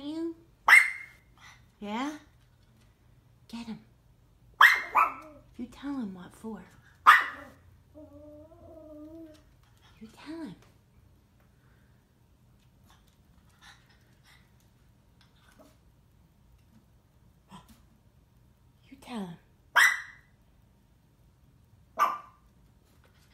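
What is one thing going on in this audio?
A small dog barks sharply in short bursts.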